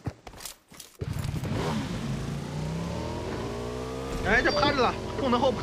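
A motorcycle engine revs and hums steadily.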